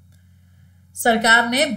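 A young woman speaks into a close microphone, explaining calmly.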